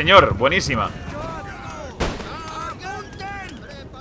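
A volley of muskets fires.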